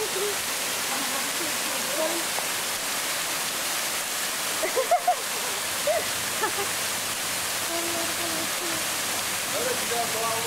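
A waterfall splashes steadily onto rocks and water.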